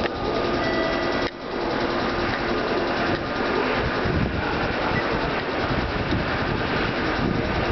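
A train's engine hums steadily as it pulls in slowly.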